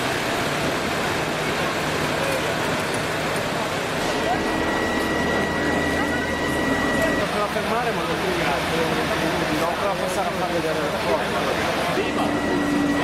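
Several men talk to one another outdoors.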